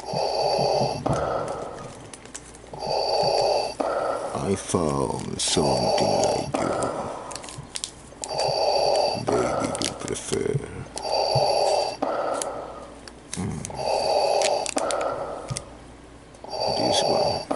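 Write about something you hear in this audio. A man speaks in a low voice close to the microphone.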